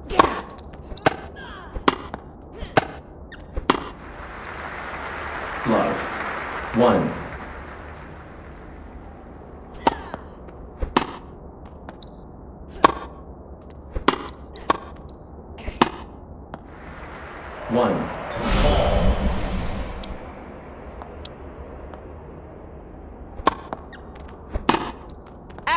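Tennis racquets hit a ball with sharp pops.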